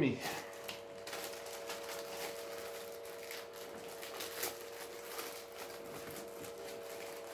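Paper rustles as a man handles a package.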